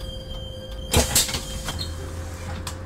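A bus door hisses and thumps open.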